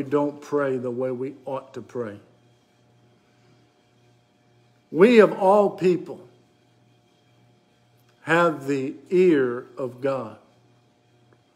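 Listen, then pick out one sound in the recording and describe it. An older man speaks with animation close to a microphone, in bursts with pauses.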